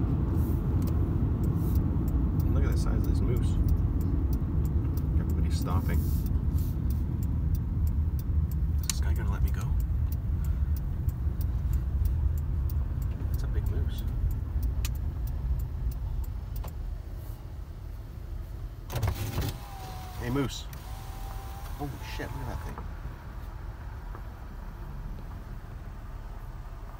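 A car rumbles steadily along a paved road, growing quieter as it slows down.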